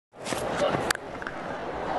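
A cricket bat cracks against a ball.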